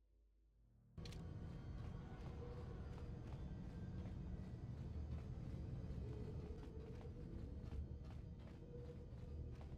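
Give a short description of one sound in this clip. A low electronic hum drones steadily.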